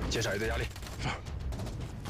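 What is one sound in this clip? A young man speaks tensely up close.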